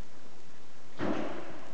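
A man breathes out hard with effort.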